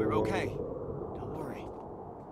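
A young girl speaks quietly and reassuringly close by.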